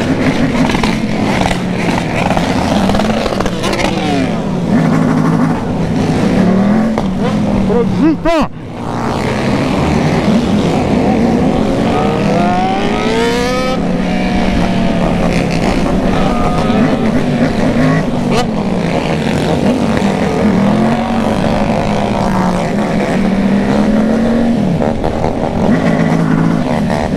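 A motorcycle engine hums and revs as it rides along.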